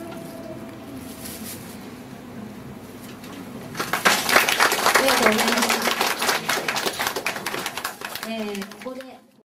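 A woman sings into a microphone, amplified through loudspeakers.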